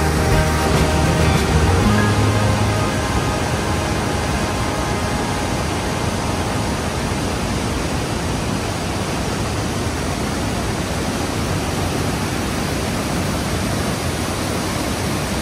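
A mountain stream rushes loudly and steadily nearby.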